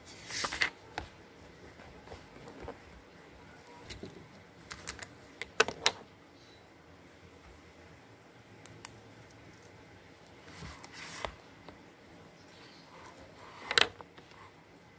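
Small objects tap and clatter on a table.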